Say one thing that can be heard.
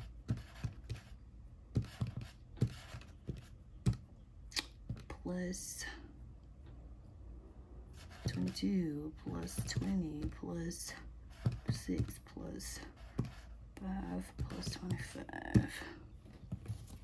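Calculator keys click softly as fingers press them.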